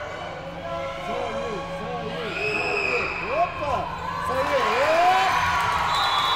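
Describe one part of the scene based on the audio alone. Sneakers squeak sharply on a gym floor in a large echoing hall.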